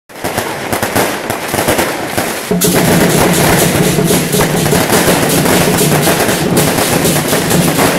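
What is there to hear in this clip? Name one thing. Large drums pound loudly.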